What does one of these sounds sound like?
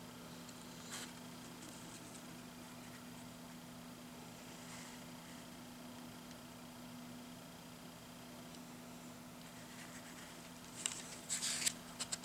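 A paper page rustles under a fingertip close by.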